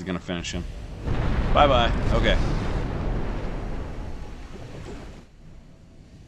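Shells crash into the sea with heavy splashes.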